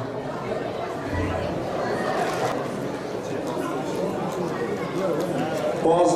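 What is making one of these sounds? A crowd of people chatters in a large, busy room.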